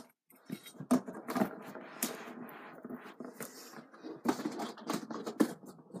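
A stiff board knocks and scrapes as it is handled.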